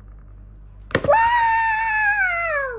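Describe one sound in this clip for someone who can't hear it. A young girl squeals loudly with excitement.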